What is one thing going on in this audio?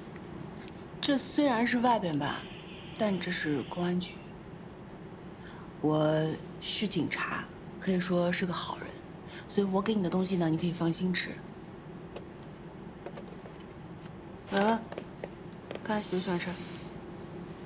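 A young woman speaks calmly, close by.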